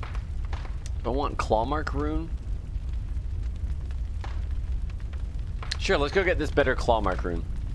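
A young man speaks casually into a microphone, close by.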